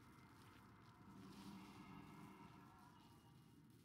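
A magic spell shimmers and hums as it is cast.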